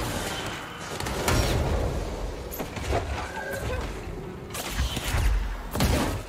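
Loud blasts and bursts of gunfire boom in a game.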